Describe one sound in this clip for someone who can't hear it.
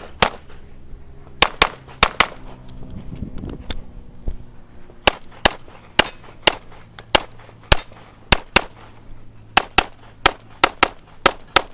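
A pistol fires sharp shots in quick bursts, close by, outdoors.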